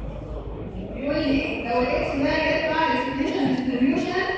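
A woman speaks clearly into a microphone, explaining calmly.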